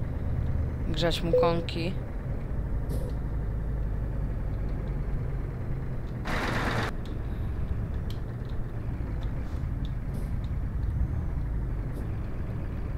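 A truck engine idles and rumbles steadily at low speed.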